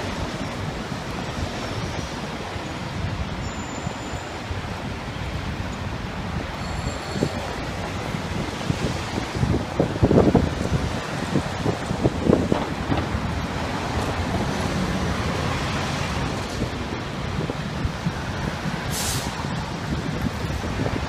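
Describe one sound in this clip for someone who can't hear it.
City traffic rumbles past steadily outdoors.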